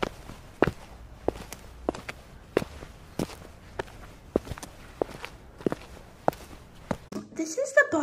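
Small plastic feet tap steadily on a hard surface.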